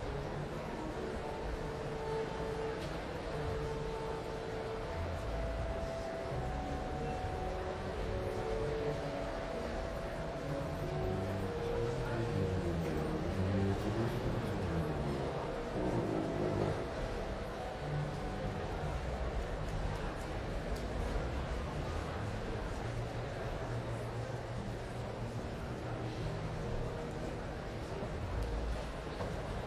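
A large audience murmurs and chatters in a big echoing hall.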